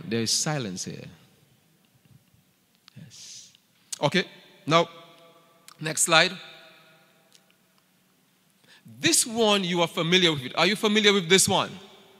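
A man speaks into a microphone with animation, his voice echoing slightly in a large room.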